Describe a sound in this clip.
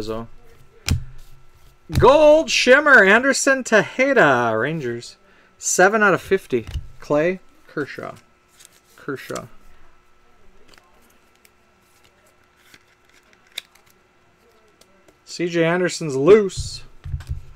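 Trading cards slide and rustle in someone's hands.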